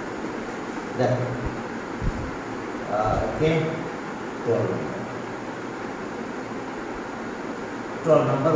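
A man speaks calmly in short phrases through a headset microphone.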